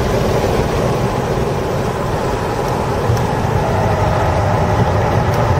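Tyres rumble steadily over the track surface.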